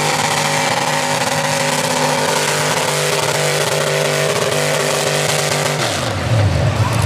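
A tractor engine roars loudly and steadily.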